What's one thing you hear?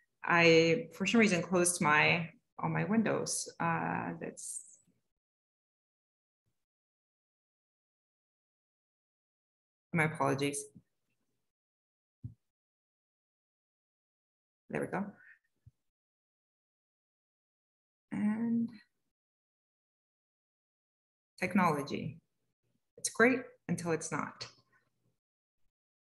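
A young woman speaks calmly over an online call, in short bursts with pauses.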